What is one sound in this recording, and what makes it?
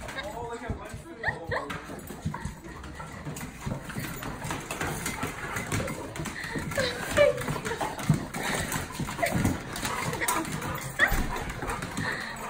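A metal baby gate rattles as a dog leans on it.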